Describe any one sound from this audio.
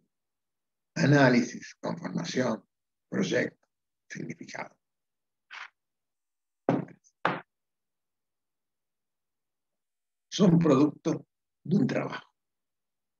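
A man speaks calmly through an online call, in short phrases with pauses.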